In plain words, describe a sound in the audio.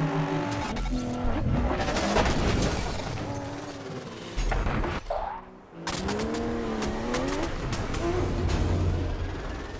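Metal crashes and scrapes in a collision.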